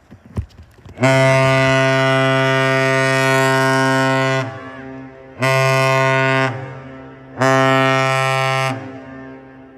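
A ship's horn blows three deep, loud blasts, one long and two shorter.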